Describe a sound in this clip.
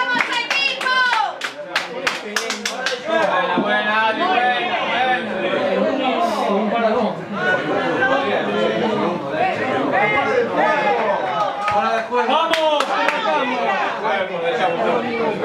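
Several young people chatter and shout animatedly close by.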